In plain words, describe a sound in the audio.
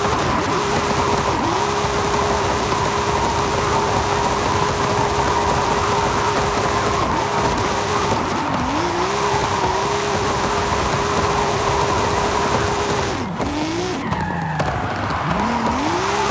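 Tyres squeal loudly on the road.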